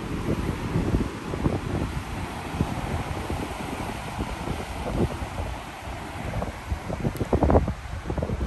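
Water rushes and churns along the side of a moving ship.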